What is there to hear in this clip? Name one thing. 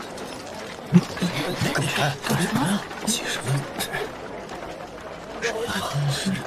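A crowd of men and women talks and murmurs nearby.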